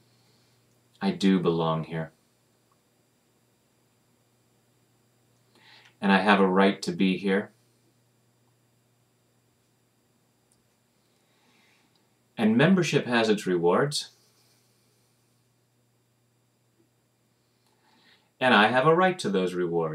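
A middle-aged man speaks calmly into a nearby microphone in short bursts with pauses.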